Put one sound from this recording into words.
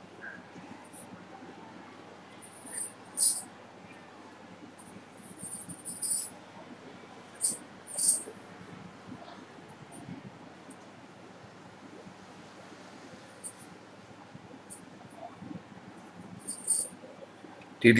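A pen scratches and squeaks across paper in short bursts.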